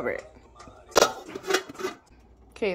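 A metal lid clanks onto a steel pan.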